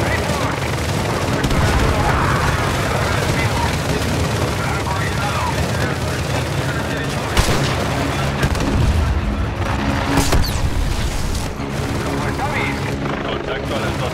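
Rifles fire in bursts of gunshots.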